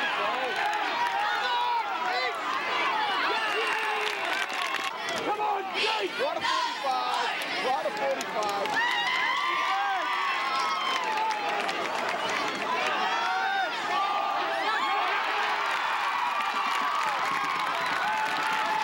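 A crowd of spectators cheers and shouts loudly nearby.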